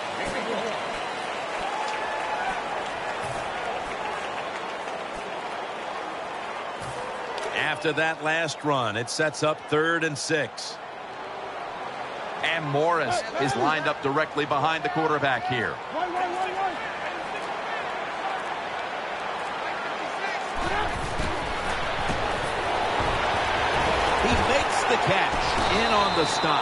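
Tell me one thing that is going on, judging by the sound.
A large stadium crowd roars and cheers steadily, swelling louder near the end.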